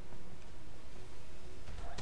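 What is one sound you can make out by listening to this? A fire crackles and burns.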